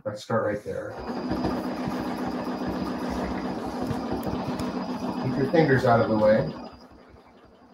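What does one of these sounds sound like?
A sewing machine hums and stitches steadily, then stops.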